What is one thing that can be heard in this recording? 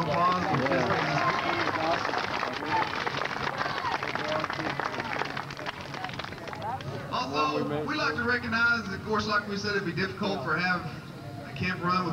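A crowd of children shouts and cheers outdoors.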